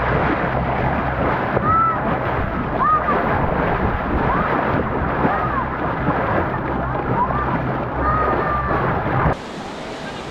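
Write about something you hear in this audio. Water splashes and churns against a moving boat's hull.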